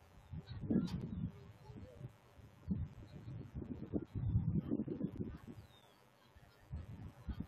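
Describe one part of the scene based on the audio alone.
Wind rumbles and buffets in gusts outdoors.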